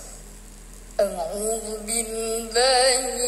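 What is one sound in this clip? A boy chants in a high, wavering voice through a microphone.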